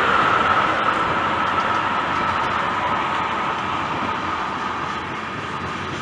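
Train wheels squeal on the rails.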